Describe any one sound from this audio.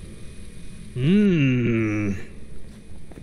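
A man lets out a long, loud exclaiming cry.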